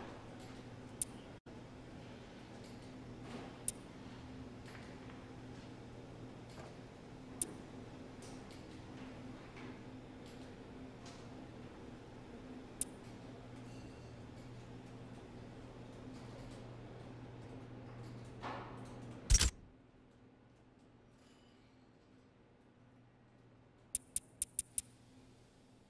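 Short electronic clicks sound as a menu selection moves.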